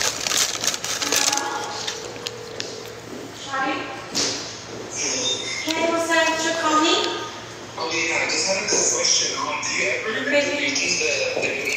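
A young woman talks casually close to a phone microphone.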